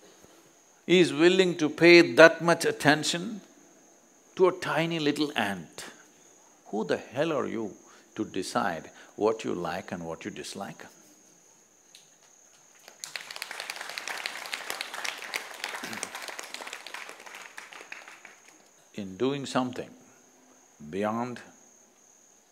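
An elderly man speaks calmly and expressively into a microphone, pausing between phrases.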